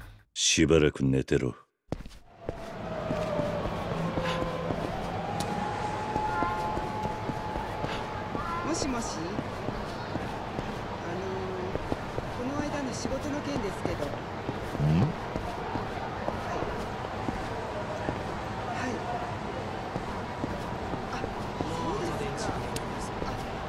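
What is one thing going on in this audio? Footsteps tap along a hard pavement.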